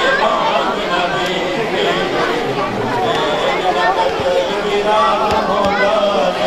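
A large crowd of men chants together loudly outdoors.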